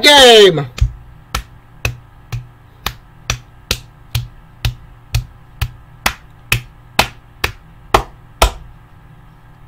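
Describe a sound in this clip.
A young man claps his hands rhythmically.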